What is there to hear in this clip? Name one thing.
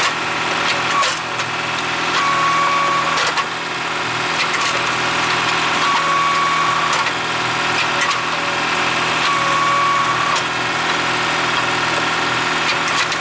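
Split logs knock and clatter as they drop onto a pile.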